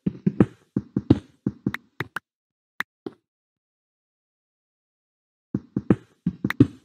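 A pickaxe chips at stone with quick, dull knocks.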